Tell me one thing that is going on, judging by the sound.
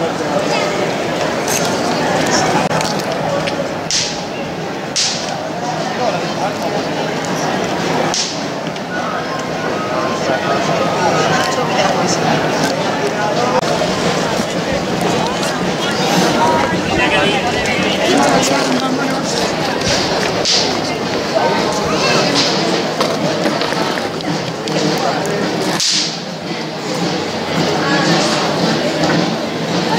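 A crowd chatters outdoors in a busy street.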